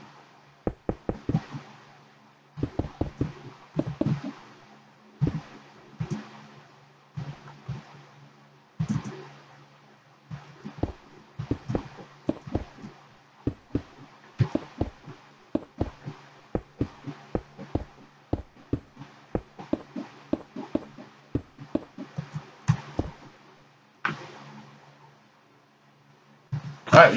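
Stone blocks thud and clack as they are placed one after another in quick bursts.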